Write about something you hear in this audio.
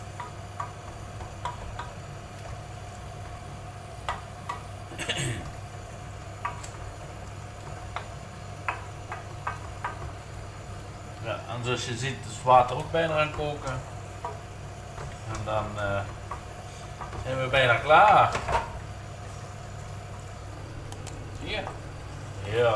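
A wooden spatula scrapes and taps against a frying pan.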